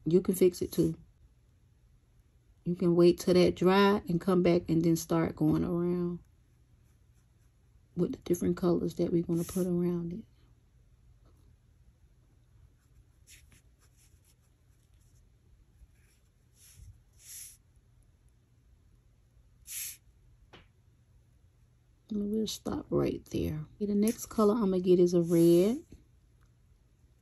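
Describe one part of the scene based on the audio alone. A paintbrush brushes softly across wood.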